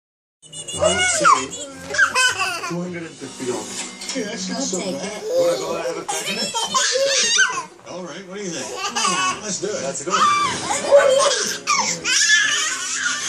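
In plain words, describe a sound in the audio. A toddler boy squeals and babbles excitedly.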